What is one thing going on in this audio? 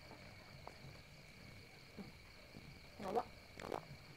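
A young woman chews food with soft crunching.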